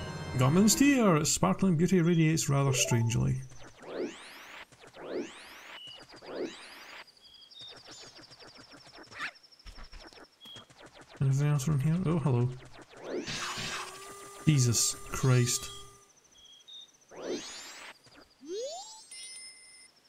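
Video game sound effects chime and whoosh.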